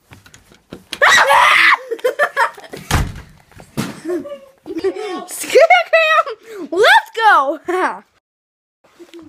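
A boy laughs loudly and shrieks.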